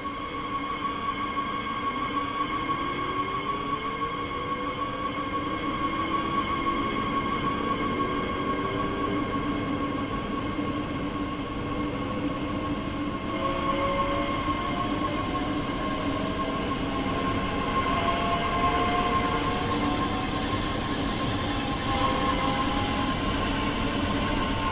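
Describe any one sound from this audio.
An electric train's motor whines and rises in pitch as the train pulls away.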